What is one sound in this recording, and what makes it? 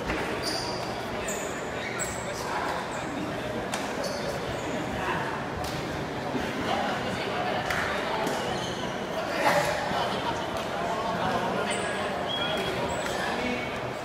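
A crowd of spectators chatters throughout a large echoing sports hall.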